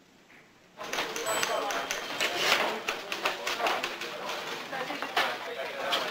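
A typewriter clacks rapidly.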